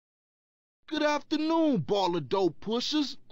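A man speaks with animation up close.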